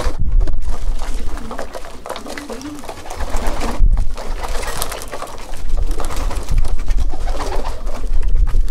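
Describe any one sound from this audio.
Pigeons peck at grain with light tapping.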